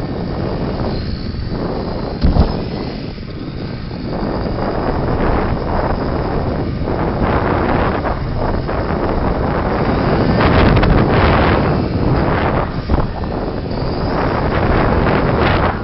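A small toy car's electric motor whines as it races across a hard floor.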